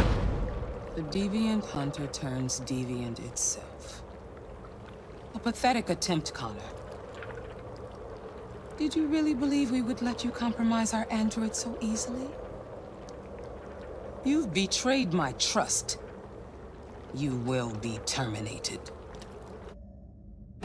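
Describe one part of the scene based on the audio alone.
A woman speaks coldly and calmly, close by.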